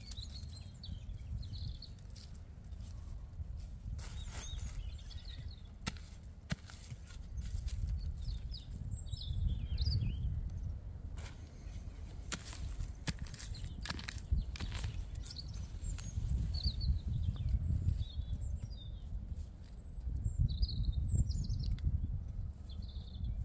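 A small hand hoe scrapes and knocks in soil, close by.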